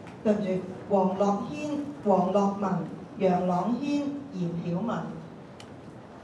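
A woman announces through a loudspeaker in a large echoing hall.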